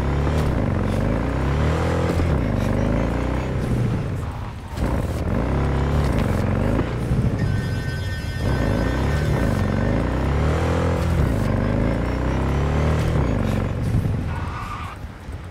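A motorcycle engine revs up and down as the bike speeds along.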